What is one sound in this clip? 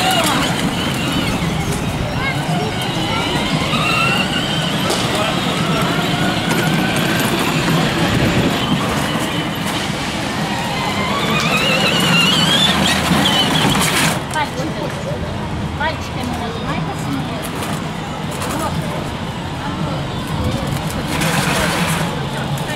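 Many people chatter nearby outdoors.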